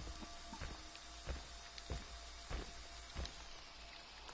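Heavy footsteps thud on wet ground.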